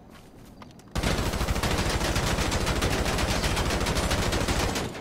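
A rifle fires in rapid, continuous bursts.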